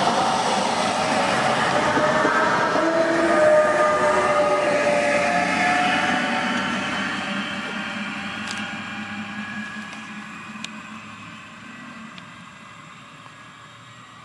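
A passenger train rushes past close by with a loud rumble and squeal of wheels, then fades into the distance.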